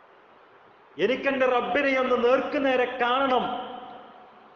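A man speaks with feeling into a microphone, with echo.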